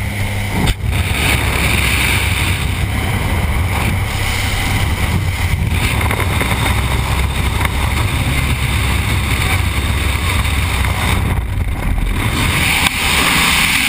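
An aircraft engine drones loudly.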